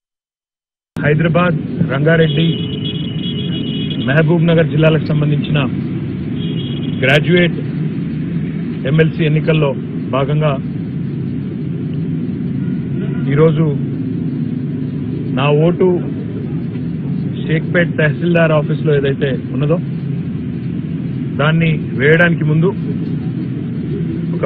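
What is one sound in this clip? A man speaks calmly and close to a microphone outdoors.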